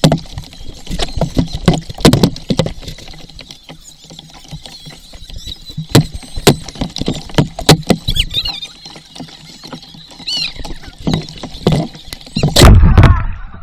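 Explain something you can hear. Water splashes and drips close by as a paddle dips in.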